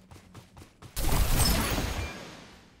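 A bright chime rings out with a burst of sparkling sound.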